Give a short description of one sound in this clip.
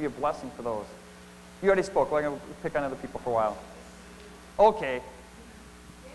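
A man speaks calmly into a clip-on microphone.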